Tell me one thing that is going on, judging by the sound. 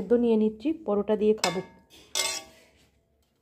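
A spoon clinks and scrapes on a metal plate.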